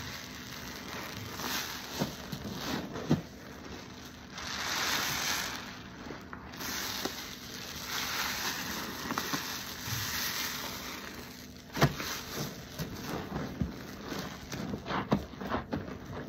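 Foam bubbles fizz and pop steadily.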